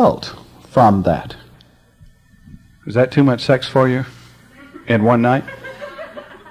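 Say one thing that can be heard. An elderly man speaks calmly and slowly, with pauses.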